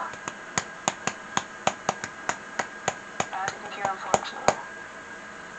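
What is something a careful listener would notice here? Quick taps on a toy xylophone ring out in a steady series.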